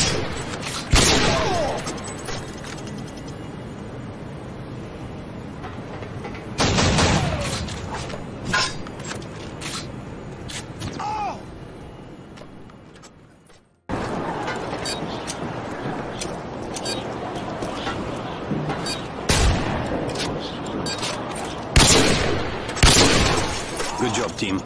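Loud gunshots crack and boom.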